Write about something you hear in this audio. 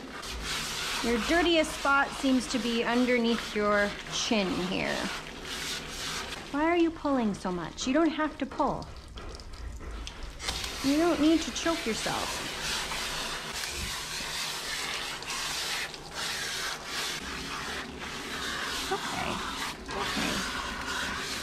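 Water sprays from a hose nozzle onto a dog's wet fur.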